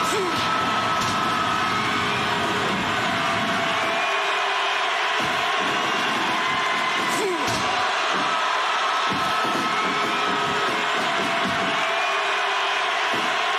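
A large crowd roars and cheers steadily in a big hall.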